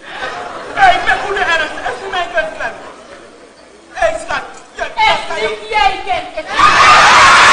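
A woman speaks loudly and with animation on a stage.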